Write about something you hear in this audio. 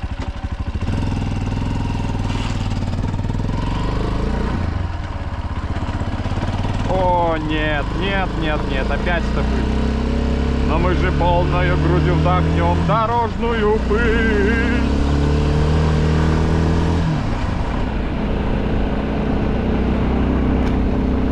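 A motorcycle engine hums and shifts pitch as the bike rides along.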